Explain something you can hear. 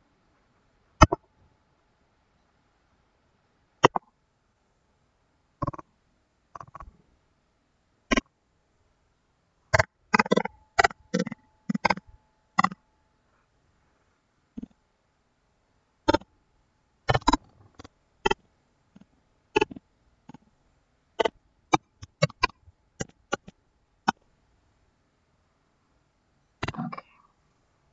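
A computer mouse clicks sharply, now and then.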